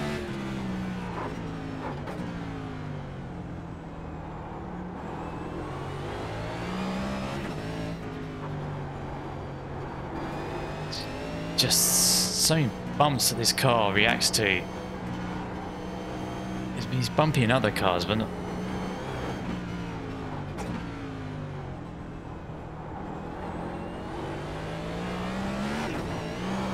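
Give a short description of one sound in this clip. A race car engine drones and rises and falls in pitch as it shifts gears.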